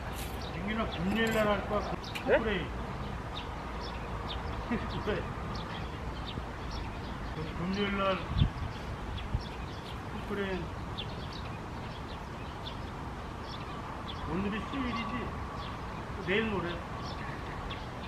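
An elderly man speaks calmly outdoors.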